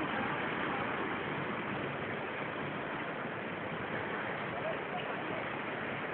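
Fast river water rushes and churns.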